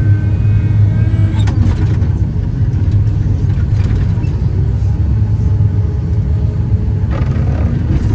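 Snow sprays and hisses against a windshield.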